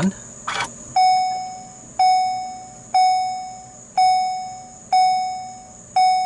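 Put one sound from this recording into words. A car's door warning chime beeps repeatedly, about once a second.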